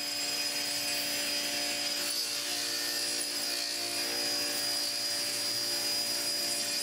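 A table saw whines steadily as it cuts through a wooden board.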